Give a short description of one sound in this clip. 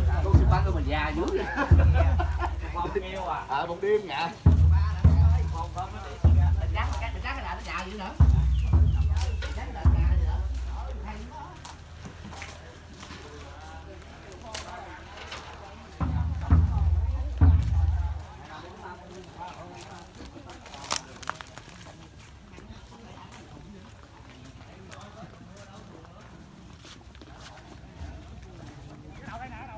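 Footsteps shuffle over a dirt path.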